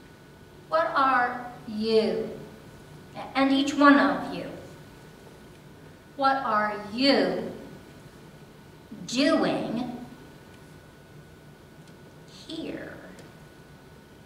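An elderly woman speaks with feeling into a microphone.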